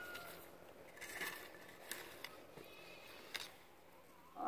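A hoe scrapes and scratches through loose soil.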